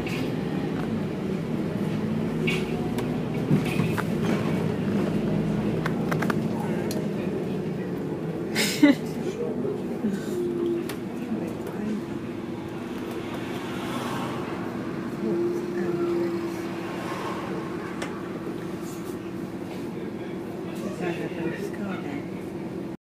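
A bus engine rumbles steadily while driving and then idling.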